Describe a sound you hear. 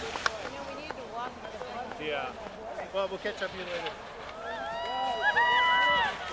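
A crowd of spectators cheers and shouts from a distance.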